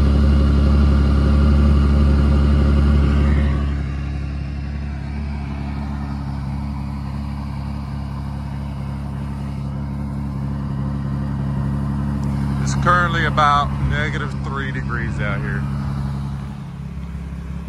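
A vehicle engine idles close by with a steady low rumble.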